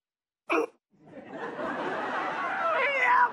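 A woman wails and sobs loudly.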